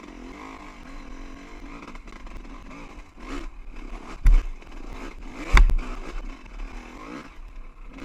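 A dirt bike engine drones steadily up close, rising and falling with the throttle.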